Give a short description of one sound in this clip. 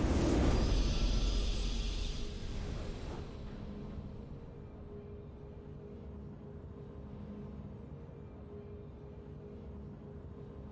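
A triumphant fanfare rings out and settles into a soft, steady hum.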